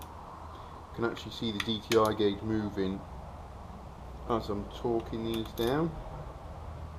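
A ratchet wrench clicks rapidly in short bursts.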